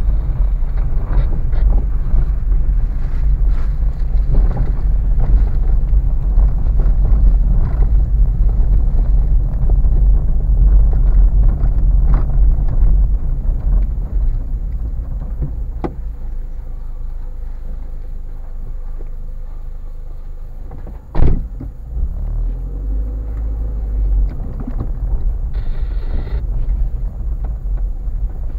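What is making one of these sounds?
Tyres crunch and rattle over a rough gravel track.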